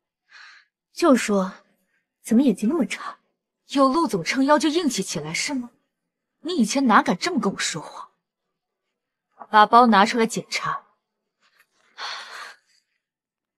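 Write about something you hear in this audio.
A second young woman speaks close by, coolly and sharply.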